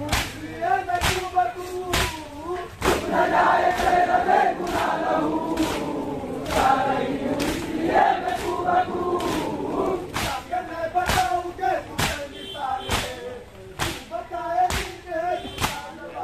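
Men beat their chests in a steady rhythm.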